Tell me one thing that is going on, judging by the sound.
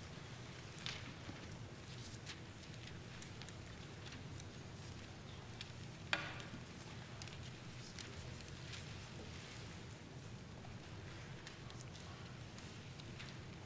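Pages rustle and click faintly in a large echoing hall.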